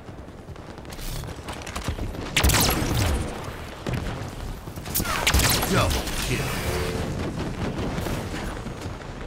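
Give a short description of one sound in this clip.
Loud blasts of gunfire and explosions boom in bursts.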